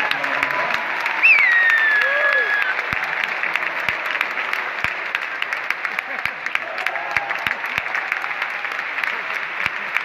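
An audience applauds and claps in a large hall.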